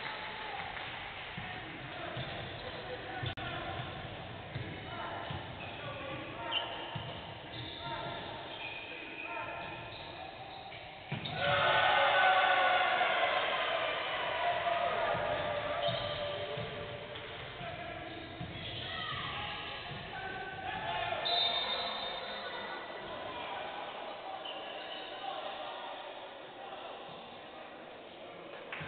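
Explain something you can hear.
Young men shout to one another in an echoing hall.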